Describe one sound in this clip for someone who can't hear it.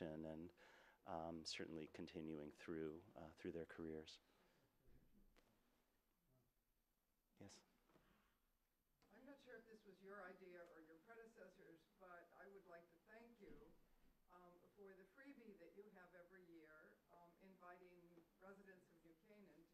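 A man speaks steadily into a microphone in a large room.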